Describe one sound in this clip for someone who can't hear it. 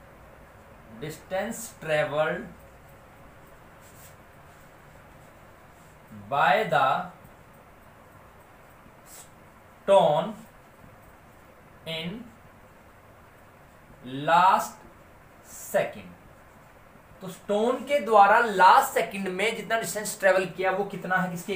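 A man speaks in short bursts, then talks steadily and calmly, close by.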